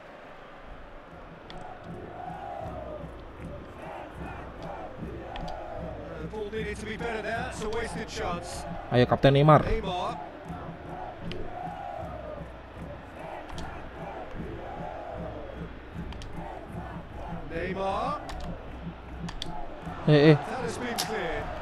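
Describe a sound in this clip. A large stadium crowd cheers and chants.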